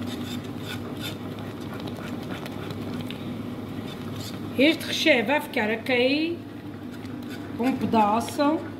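A whisk scrapes and stirs thick batter in a metal pan.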